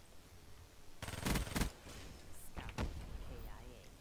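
Gunfire rings out in short bursts.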